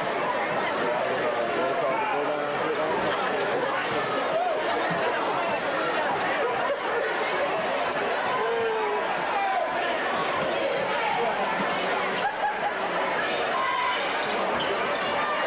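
A large crowd chatters and shouts in an echoing gym.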